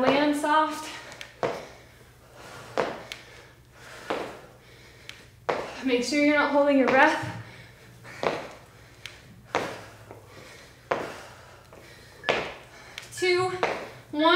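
Feet thump on the floor as a woman jumps.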